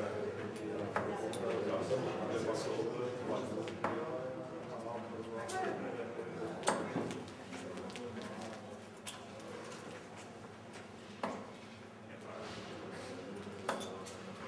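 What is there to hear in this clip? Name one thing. Darts thud sharply into a board, one after another.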